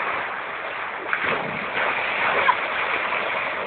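A bull splashes heavily into water.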